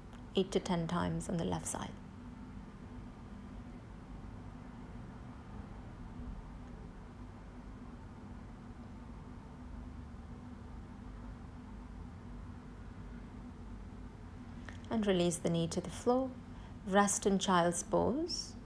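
A young woman speaks calmly and clearly close by, giving instructions.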